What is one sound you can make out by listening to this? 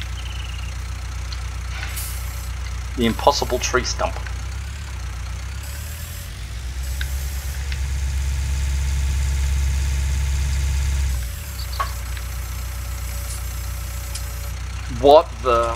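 A tractor engine rumbles steadily, growing louder for a while before dropping back.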